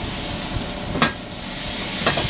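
A metal lid clanks against a pan.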